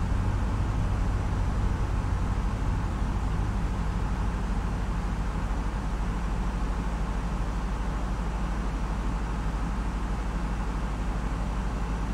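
Jet engines roar with a steady, deep hum.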